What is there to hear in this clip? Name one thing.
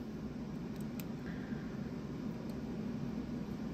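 A small screwdriver clicks faintly as it turns a screw.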